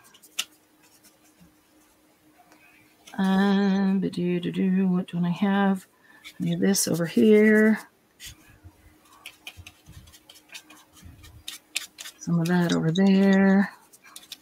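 Paper rustles softly under a pair of hands.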